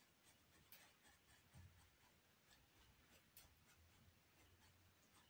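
A brush dabs and scrapes softly on canvas.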